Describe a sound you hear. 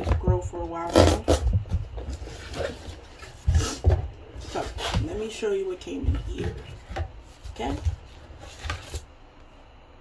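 Cardboard packaging rustles and crinkles as it is opened.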